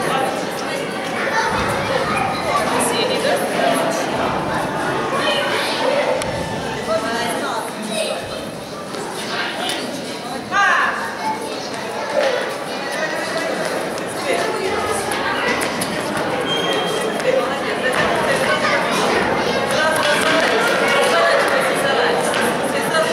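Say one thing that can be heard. A crowd of adults and children chatter in a large echoing hall.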